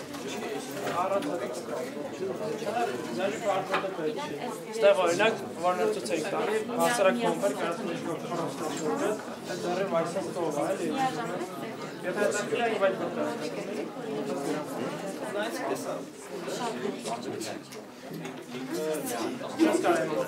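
Young people talk and chatter over each other in a room.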